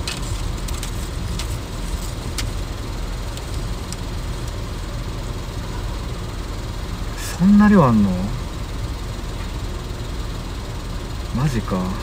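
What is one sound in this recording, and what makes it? A car engine hums with a steady low rumble.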